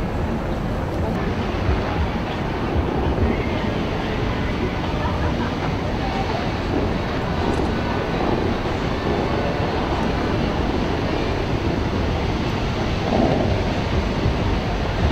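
Fountain jets rush and splash in a steady roar.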